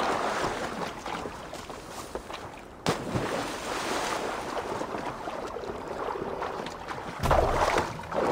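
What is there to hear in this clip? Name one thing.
Water splashes as someone swims.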